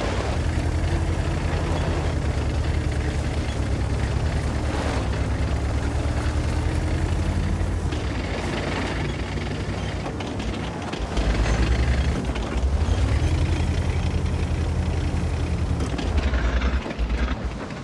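A heavy tank engine rumbles and roars as the tank drives.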